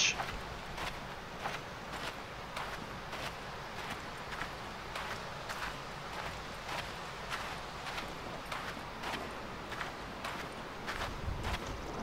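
Footsteps swish steadily through grass.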